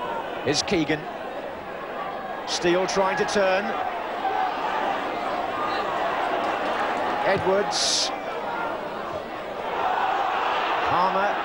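A large crowd murmurs and cheers in a big open stadium.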